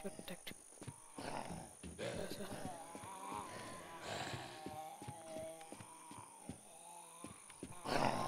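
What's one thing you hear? Footsteps thud on hollow wooden floorboards.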